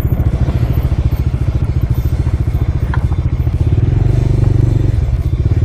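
A motorcycle engine thumps steadily up close, rising a little in loudness.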